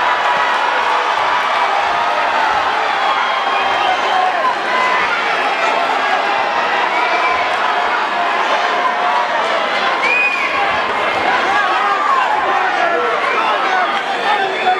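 A crowd cheers and shouts loudly in a large echoing hall.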